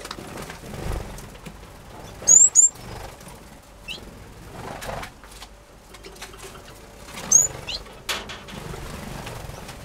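Bird wings flutter briefly as a bird flies past.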